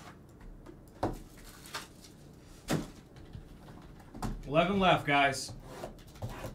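Cards and wrappers rustle and tap as they are handled.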